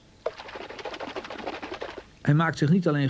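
Water splashes as a bird thrashes about.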